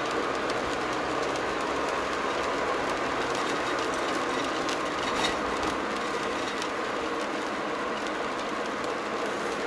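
Tyres roll steadily on the road with a constant road noise.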